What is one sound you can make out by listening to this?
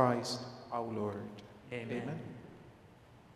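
An older man speaks calmly into a microphone in a reverberant room.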